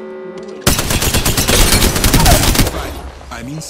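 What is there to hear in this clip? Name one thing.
A gun fires a rapid burst of loud shots.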